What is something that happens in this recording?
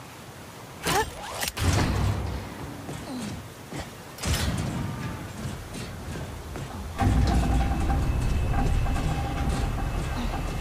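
A climber's hands and feet thump and scrape on a metal grating.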